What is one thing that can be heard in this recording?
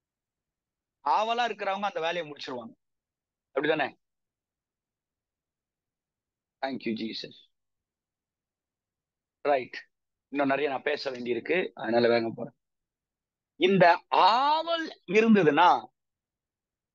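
A middle-aged man speaks calmly in short phrases, heard through an online call.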